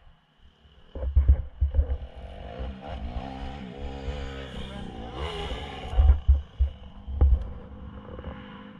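A dirt bike engine runs close by, its pitch rising and falling.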